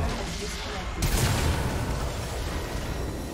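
A crystal shatters with a loud, booming blast.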